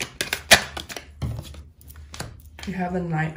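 Cards slap softly onto a hard tabletop.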